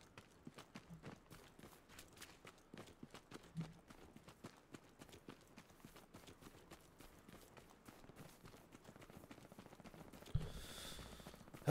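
Footsteps crunch steadily through grass and dirt.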